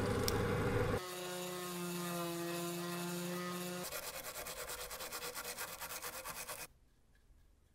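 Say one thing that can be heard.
A small rotary tool buzzes with a high whine.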